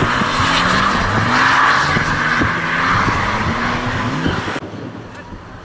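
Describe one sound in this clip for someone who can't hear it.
Tyres screech loudly on tarmac.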